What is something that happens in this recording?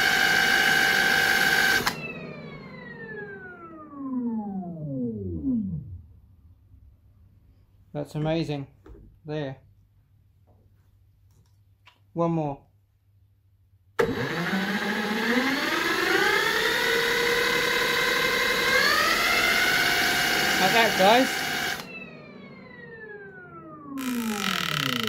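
A power drill whirs loudly, starting and stopping in short bursts.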